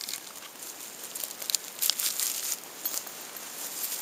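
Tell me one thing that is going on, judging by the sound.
Dry bark rustles and crackles between a person's hands.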